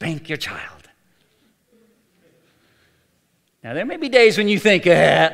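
A middle-aged man speaks with animation into a microphone, with a pause between phrases.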